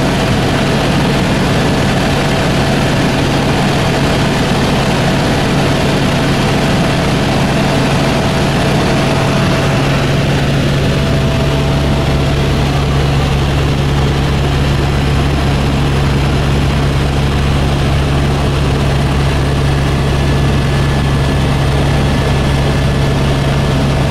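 A helicopter engine and rotor drone loudly and steadily from inside the cabin.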